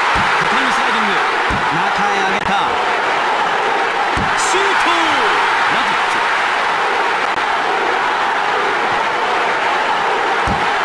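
A stadium crowd roars steadily.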